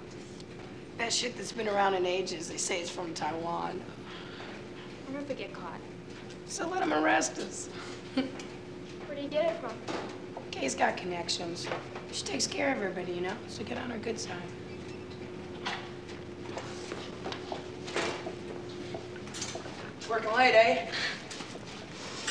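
A young woman speaks quietly and earnestly nearby.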